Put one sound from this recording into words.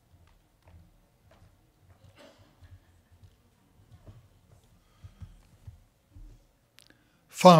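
Footsteps tread softly across a floor.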